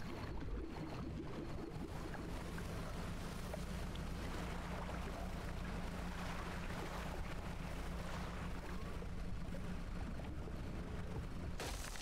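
Water splashes and churns behind a moving boat.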